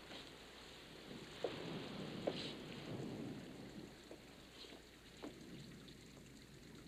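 Fabric rustles as clothes are handled and pushed aside.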